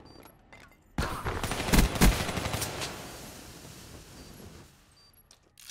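A loud blast bursts and rings out, then slowly fades.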